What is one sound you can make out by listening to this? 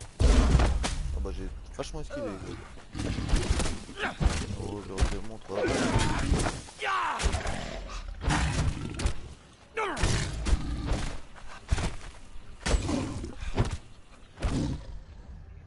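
Blades strike flesh with heavy thuds.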